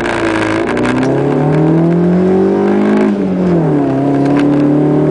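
A car engine revs hard, rising in pitch and dropping with each gear change.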